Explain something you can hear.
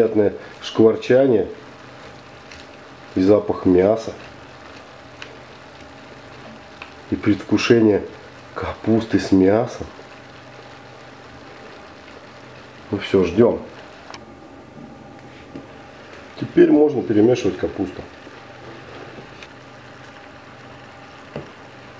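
A wooden spatula stirs and rustles through cabbage in a pan.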